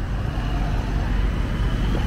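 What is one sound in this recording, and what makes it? A van drives past.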